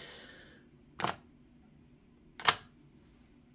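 Earbuds snap into a charging case with sharp clicks.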